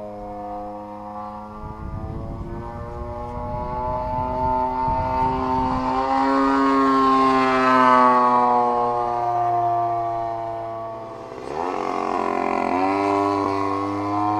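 A model plane's engine whines loudly as it flies past and its pitch shifts.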